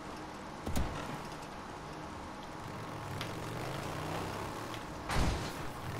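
Tyres crunch over snow.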